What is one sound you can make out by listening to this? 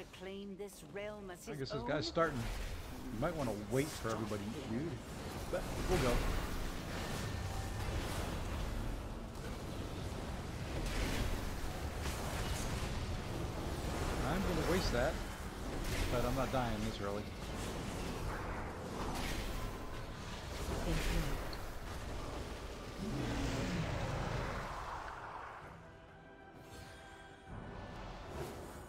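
Game sound effects boom and clash during a battle.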